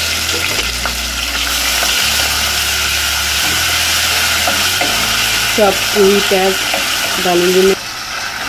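A wooden spoon scrapes and stirs in a pan.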